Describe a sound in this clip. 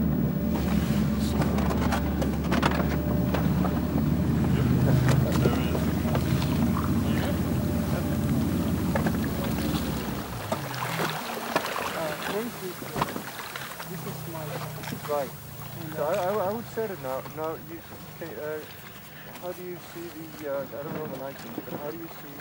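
Floating ice knocks against a boat's hull.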